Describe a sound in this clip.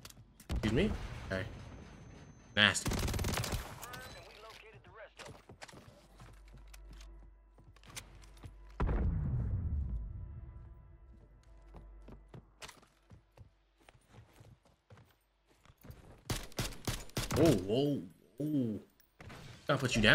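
A young man speaks into a microphone with animation.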